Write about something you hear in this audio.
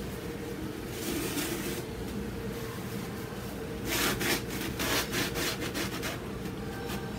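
A stiff brush scrubs against a rough surface in short bursts.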